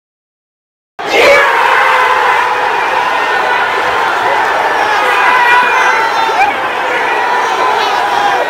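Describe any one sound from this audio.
A crowd of fans roars and cheers loudly.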